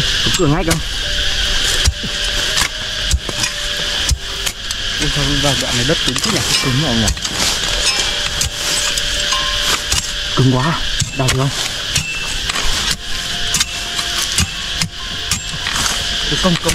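Metal tools strike and scrape the soil with repeated thuds.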